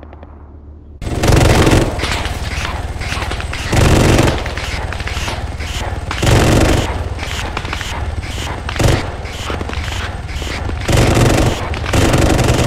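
A helicopter's cannon fires in rapid bursts.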